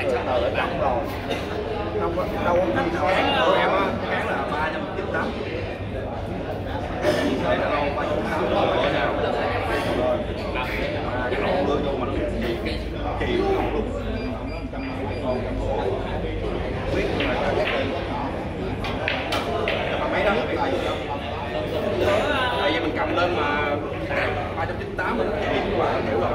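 People chat in a murmur nearby.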